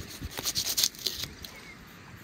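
A knife slices through raw meat.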